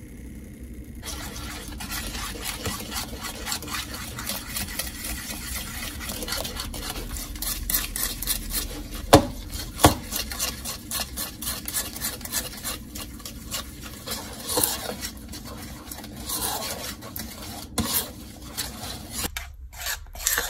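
A spoon scrapes and clinks against a bowl while stirring thick liquid.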